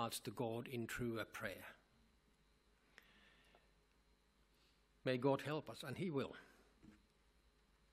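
A middle-aged man speaks calmly through a microphone, pausing between phrases.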